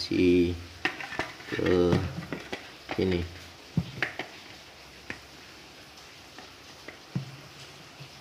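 Hard plastic clicks and knocks as a helmet visor is handled.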